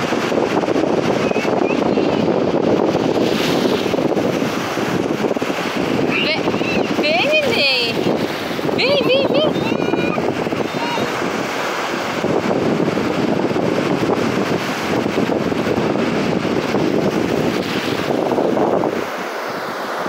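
Small waves wash up over sand with a soft, steady rush.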